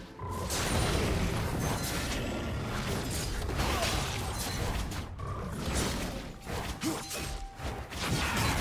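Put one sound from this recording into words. Game combat effects of blows and spells clash repeatedly.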